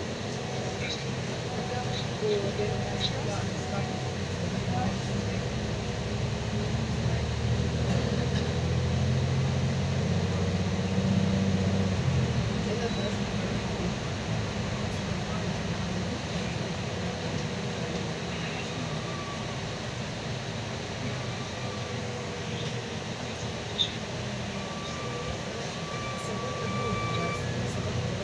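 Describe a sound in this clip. Tyres hiss over a snowy road.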